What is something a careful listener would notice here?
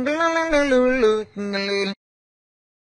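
A man sings a short tune into a microphone.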